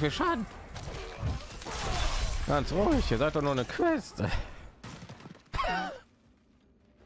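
Magic spells crackle and blast during a fight.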